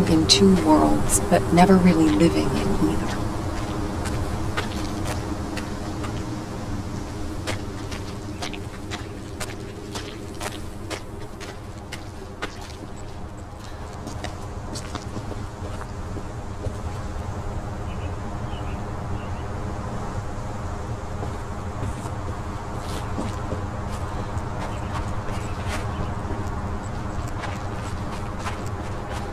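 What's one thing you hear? Footsteps crunch on dry leaves and earth.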